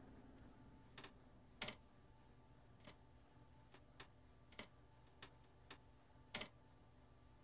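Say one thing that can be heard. Short menu clicks tick several times.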